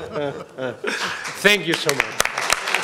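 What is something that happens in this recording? Elderly men laugh heartily nearby.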